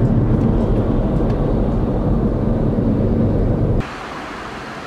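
A car engine hums as tyres roll over the road.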